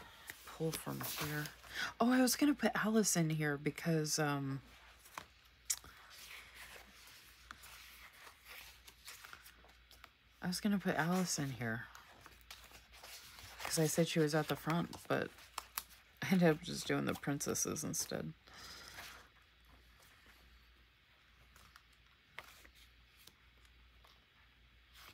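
Paper pages rustle as they are flipped.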